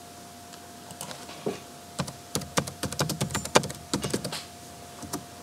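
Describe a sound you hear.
Keys clatter as someone types on a keyboard.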